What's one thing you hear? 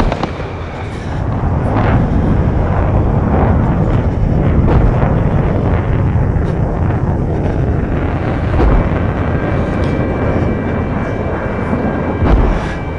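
A jet engine roars steadily overhead.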